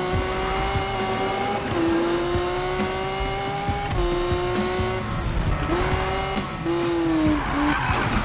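A racing car engine roars at high revs, shifting gears as it speeds along.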